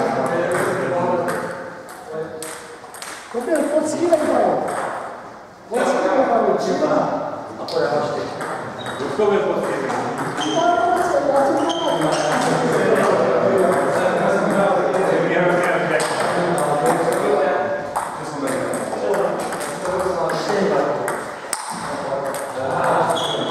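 Men talk and call out across an echoing hall.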